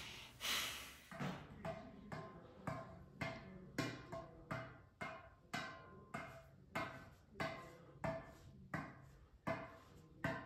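A tennis ball taps repeatedly off a racket at a steady pace.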